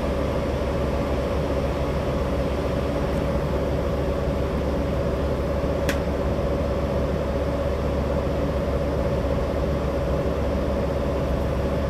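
A bus engine hums and rumbles steadily inside the cabin.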